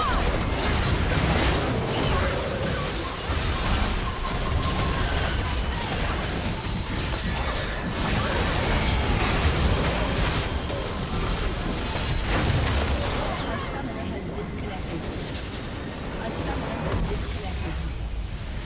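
Video game spells crackle, whoosh and thud in a busy battle.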